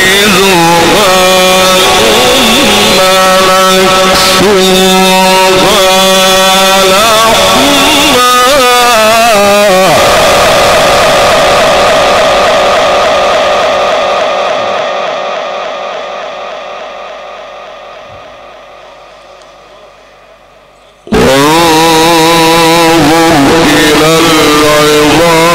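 A man chants in long, drawn-out melodic phrases through a microphone, with heavy echo.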